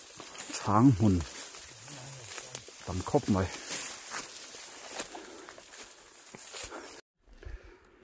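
Tall grass and leaves rustle and swish against legs.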